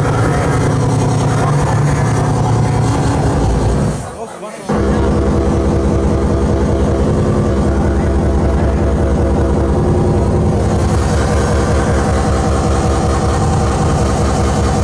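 Loud electronic dance music with a pounding beat plays through loudspeakers, cutting out briefly before kicking back in.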